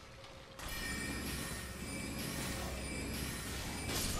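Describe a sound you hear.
Magic crackles and zaps in a game fight.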